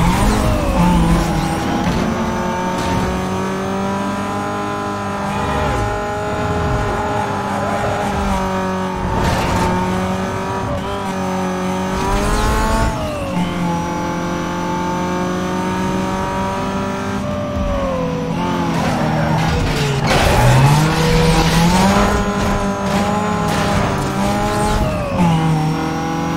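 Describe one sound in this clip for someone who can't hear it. A sports car engine drops in pitch as it shifts up through the gears.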